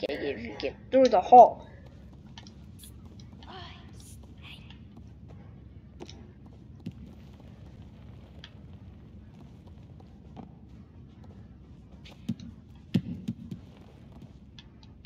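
A ball bumps and rolls across a wooden floor.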